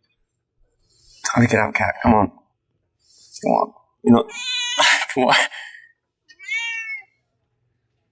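A cat meows close by, several times.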